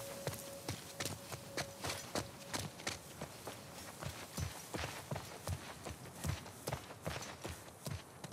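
Footsteps walk steadily through grass.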